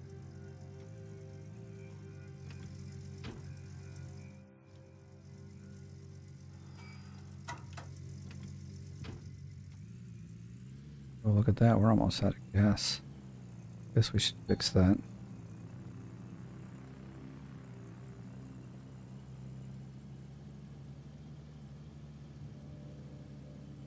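A pickup truck's engine rumbles steadily and rises as it drives off.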